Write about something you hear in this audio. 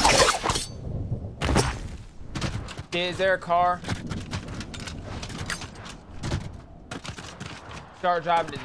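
Quick footsteps patter on hard ground in a game.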